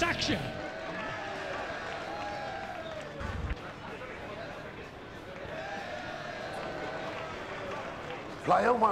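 A man shouts with excitement.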